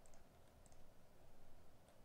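A block crumbles as it is broken.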